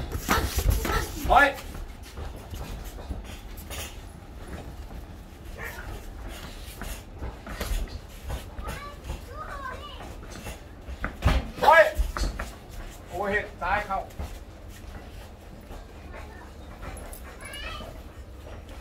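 A man calls out to young boxers.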